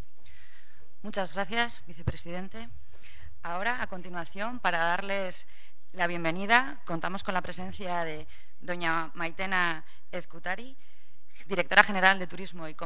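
A young woman speaks calmly through a microphone in a large hall.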